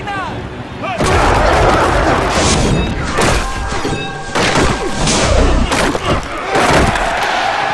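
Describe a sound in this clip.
Football players crash together in heavy tackles.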